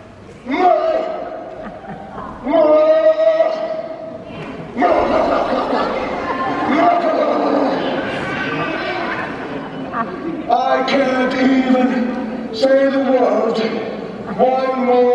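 A man speaks in a loud, theatrical voice in an echoing hall.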